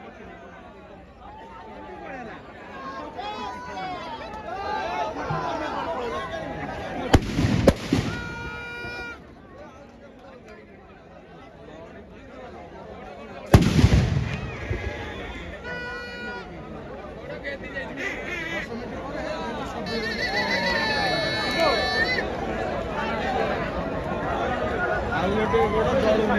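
A firework fountain hisses and crackles as it sprays sparks.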